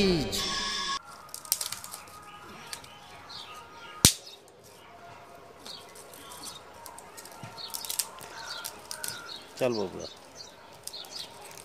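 Dry twigs snap and crack as a man breaks them by hand.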